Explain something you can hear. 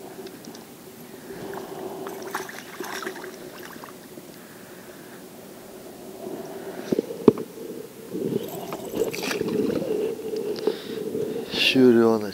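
A spinning reel winds in fishing line.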